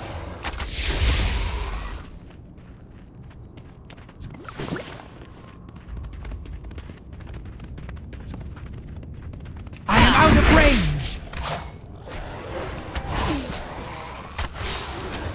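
Magic spells burst and whoosh in short bursts.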